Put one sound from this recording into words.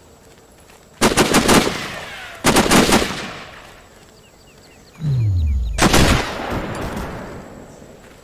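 Rifle shots crack loudly and echo away.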